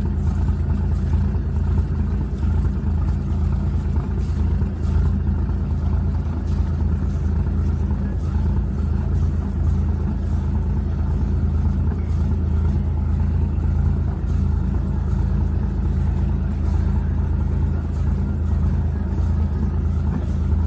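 Water splashes gently against a hull.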